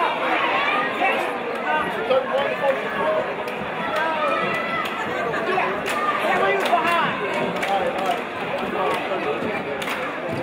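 A crowd chatters and cheers in a large echoing gym.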